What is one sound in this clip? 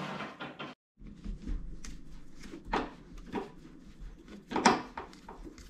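A screwdriver creaks and scrapes as it turns a screw into wood.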